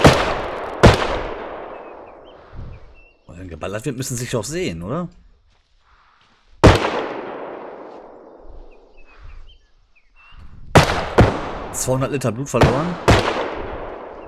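Gunshots ring out loudly and echo away.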